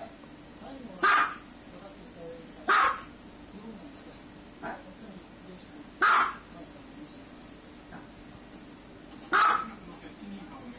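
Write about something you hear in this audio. A small dog barks sharply, in short single yaps.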